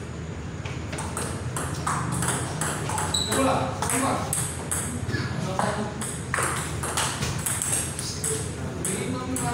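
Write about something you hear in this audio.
A ping-pong ball clicks quickly back and forth off paddles and a table.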